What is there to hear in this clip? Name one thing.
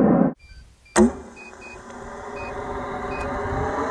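Air rushes past a rocket in flight.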